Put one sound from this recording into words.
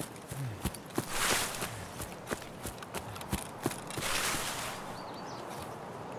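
Leafy branches rustle against a body pushing through them.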